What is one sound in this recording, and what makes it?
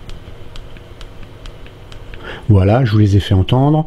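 Hands pick up a phone with soft tapping and rustling.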